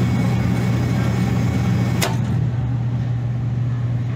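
A control knob clicks as a hand turns it.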